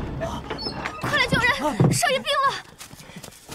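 A young woman cries out in alarm.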